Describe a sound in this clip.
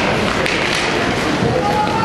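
Ice skates scrape and swish across an ice rink.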